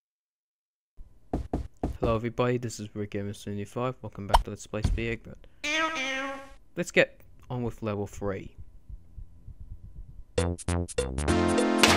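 Bleeping video game sound effects play in quick bursts.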